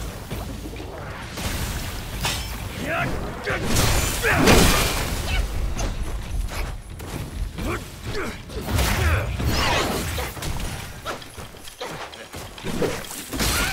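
A staff whooshes through the air.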